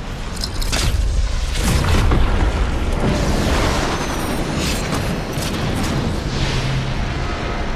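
Wind rushes loudly during a fast fall through the air.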